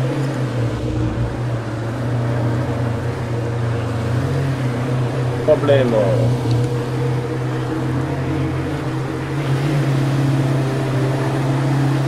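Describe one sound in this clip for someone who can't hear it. A vehicle engine hums steadily while driving.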